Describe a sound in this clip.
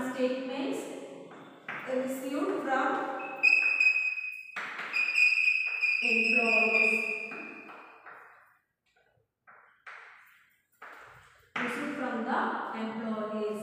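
A woman speaks nearby in a steady, explaining tone.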